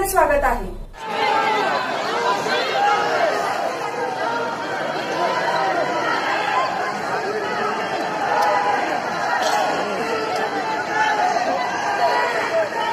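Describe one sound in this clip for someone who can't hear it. A crowd murmurs and shouts outdoors.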